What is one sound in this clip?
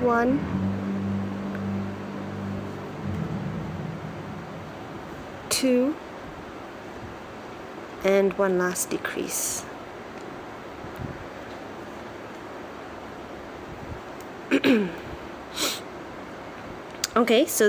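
A crochet hook softly rubs and pulls through yarn.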